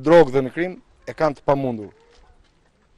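A man speaks into microphones close by, firmly and clearly.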